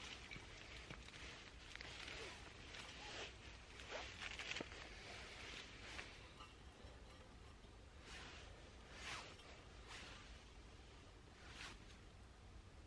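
Hands rustle and scrape.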